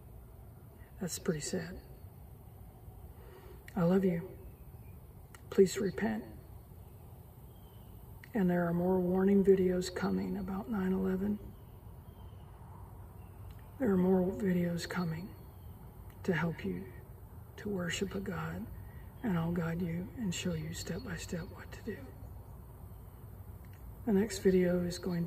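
A middle-aged woman speaks calmly and slowly into a close microphone, with pauses.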